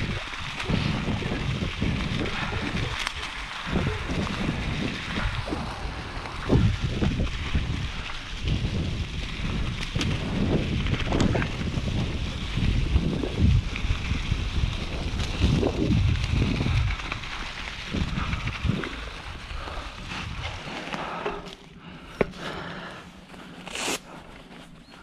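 Bicycle tyres crunch and rustle through dry leaves.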